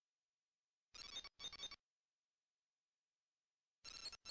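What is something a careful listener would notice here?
A game menu beeps softly as options are selected.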